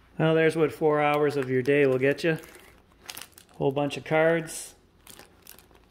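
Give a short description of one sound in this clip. Cards click and shuffle in a plastic box.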